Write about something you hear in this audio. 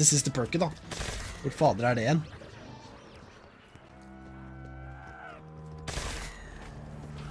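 A ray gun fires with a sharp crackling burst.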